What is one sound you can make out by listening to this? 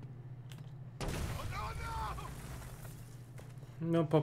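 A wall bursts apart with a loud crash and rumble.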